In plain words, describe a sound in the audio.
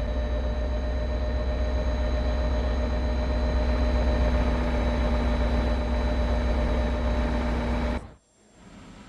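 A diesel locomotive engine rumbles and hums steadily nearby.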